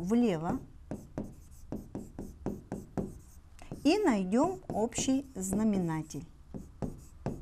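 A felt marker squeaks and taps across a whiteboard in short strokes.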